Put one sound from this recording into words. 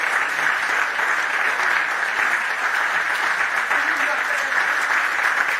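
A crowd applauds in a hall.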